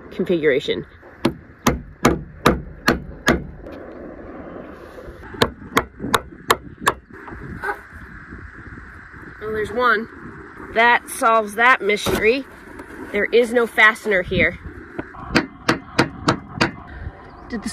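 A hammer taps sharply on metal.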